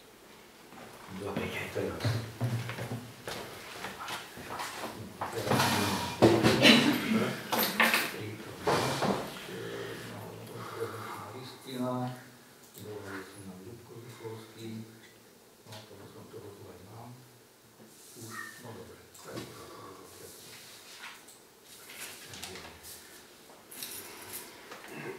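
A man speaks calmly to a group in a room with a slight echo.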